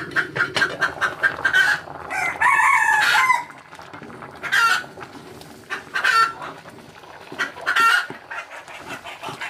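Water sizzles and bubbles in a hot pan.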